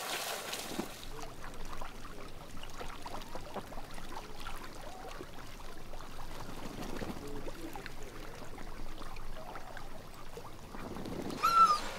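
Ducks quack softly near water.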